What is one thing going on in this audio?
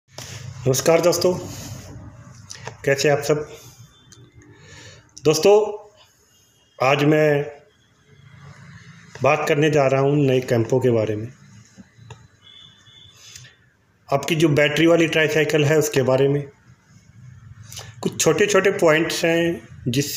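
A middle-aged man speaks calmly and close up, in short bursts with pauses.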